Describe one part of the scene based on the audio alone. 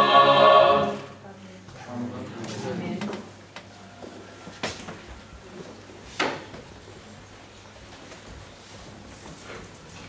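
Footsteps and shuffling sound as people walk about.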